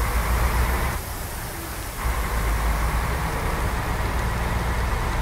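Tyres hiss on wet asphalt.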